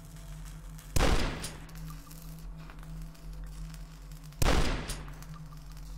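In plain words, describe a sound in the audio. A shotgun fires loudly twice, each blast echoing briefly.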